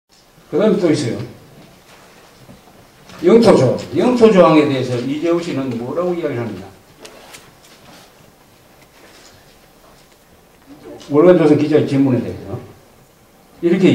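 An elderly man reads out calmly into a microphone, with pauses.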